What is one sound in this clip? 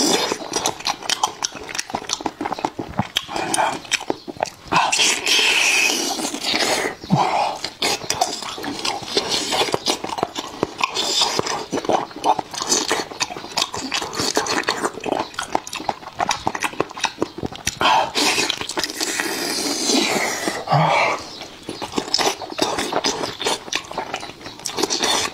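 A man chews and slurps food loudly and wetly close to a microphone.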